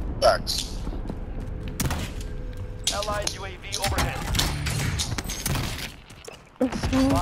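Footsteps run on hard ground.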